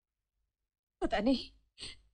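A woman speaks in an upset voice.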